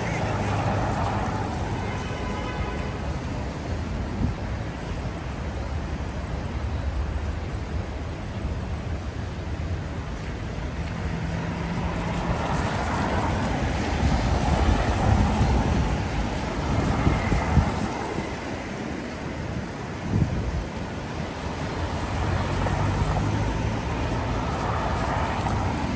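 Traffic hums steadily along a wet city street.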